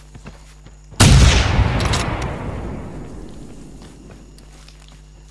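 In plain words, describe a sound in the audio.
A rifle fires a single loud shot that rolls away in a long echo.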